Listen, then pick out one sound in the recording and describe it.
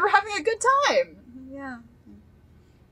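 A young woman exclaims into a microphone.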